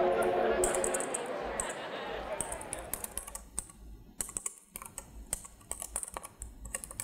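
Fingers tap quickly on a computer keyboard.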